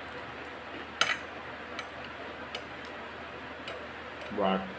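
A spoon scrapes and clicks against a plate.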